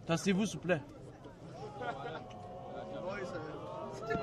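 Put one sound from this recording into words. Young men talk close by with animation.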